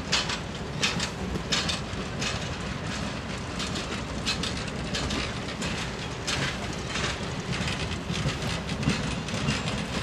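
Steel wheels clack and squeal over rail joints.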